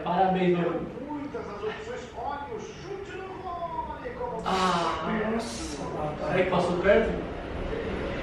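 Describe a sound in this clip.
A second young man laughs and chats close by.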